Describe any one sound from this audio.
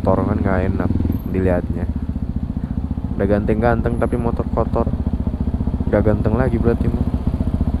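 A motorcycle engine revs up sharply in short bursts.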